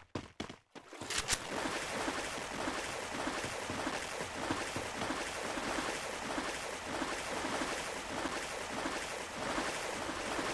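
Water splashes steadily as a swimmer paddles through it.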